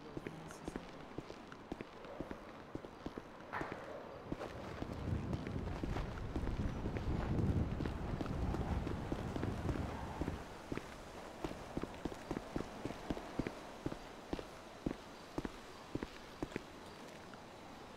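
Footsteps tap quickly on a hard pavement.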